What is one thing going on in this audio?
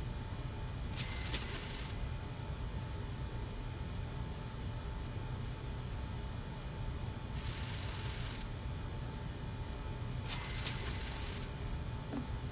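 Game menu chimes sound as upgrades are bought.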